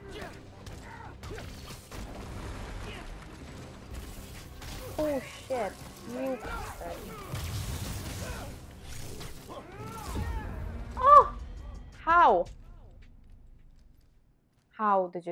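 Punches and thuds land in a fast fight.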